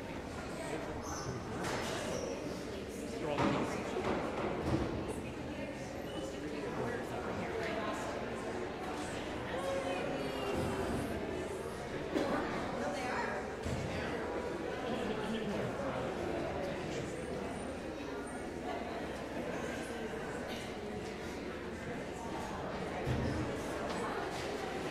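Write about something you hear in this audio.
A crowd of men and women chat and greet each other in a large echoing hall.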